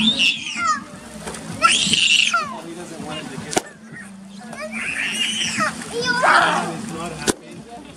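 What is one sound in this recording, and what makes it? Water splashes as children swim and kick.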